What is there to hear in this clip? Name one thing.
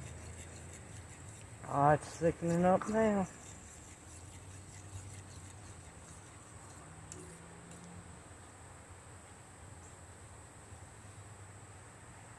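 A spoon scrapes and swishes through batter in a metal pan.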